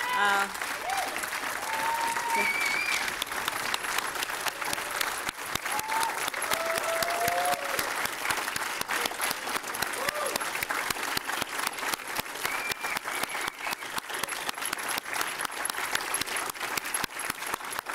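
A crowd claps loudly in a large echoing hall.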